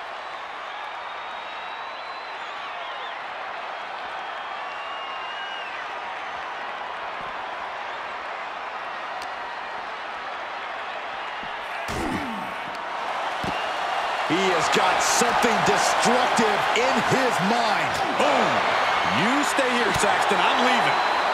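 A large crowd cheers and roars in a big arena, growing louder.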